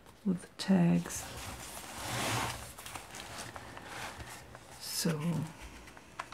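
Paper pages rustle as they are turned and handled.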